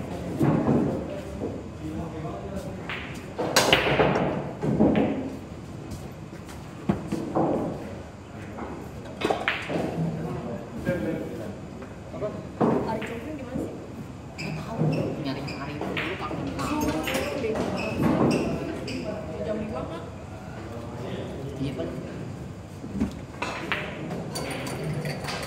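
Men chat nearby.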